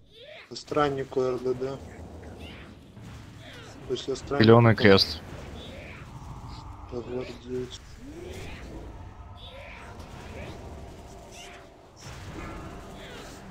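Electric magic crackles and zaps during a battle.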